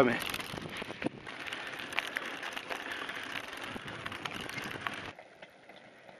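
Bicycle tyres crunch over a dirt track.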